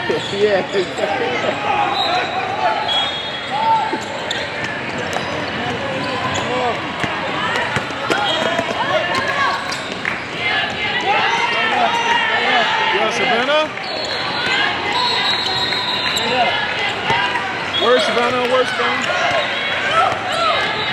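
A crowd of spectators murmurs and calls out in the background.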